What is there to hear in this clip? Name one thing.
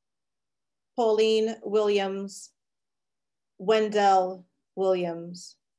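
A woman speaks calmly over an online call, reading out names.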